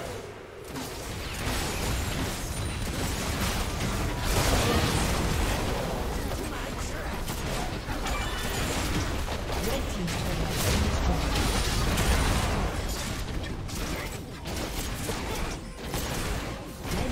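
Spell blasts, hits and explosions of a video game battle crackle and boom without pause.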